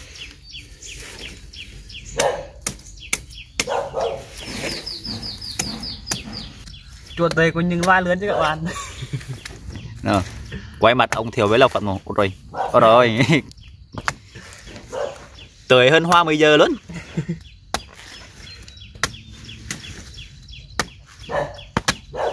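A machete chops into a banana stem with sharp knocks.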